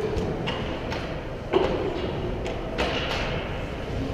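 Hockey sticks and pucks clack against the ice.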